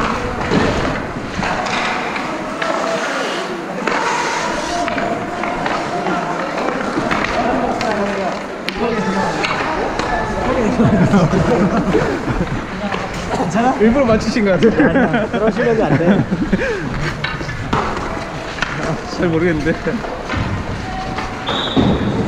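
Skates scrape and carve across ice.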